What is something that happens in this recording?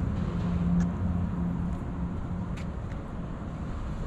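Footsteps tap on pavement close by.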